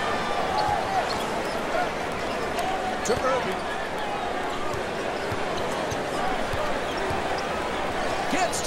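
A crowd murmurs steadily in a large echoing arena.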